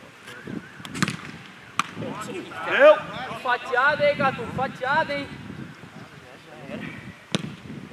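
A football is kicked with sharp thumps outdoors.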